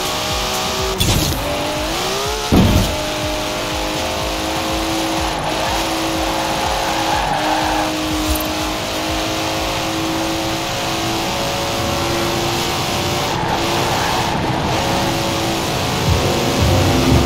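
Tyres hum on the road.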